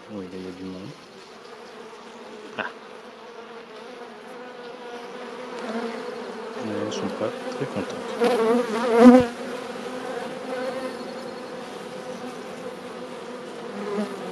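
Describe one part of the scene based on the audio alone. Bees buzz in a steady, swelling hum close by.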